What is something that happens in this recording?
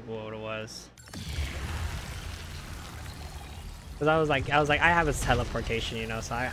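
A teleporter hums and shimmers with a rushing whoosh.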